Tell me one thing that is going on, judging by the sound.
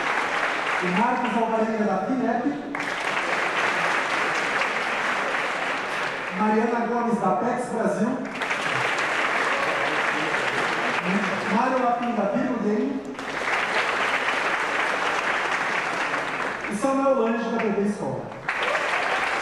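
A young man speaks into a microphone over loudspeakers, in short phrases.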